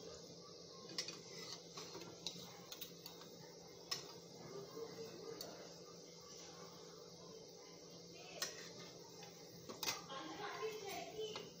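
A metal spatula clinks against a metal pan.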